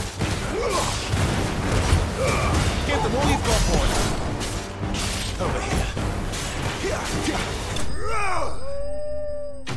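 Magic bursts crackle and explode.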